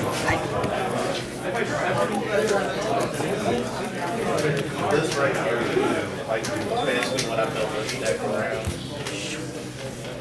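Playing cards slide and tap on a table.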